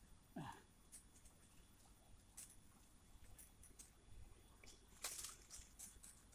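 A knife scrapes and cuts the bark of a branch.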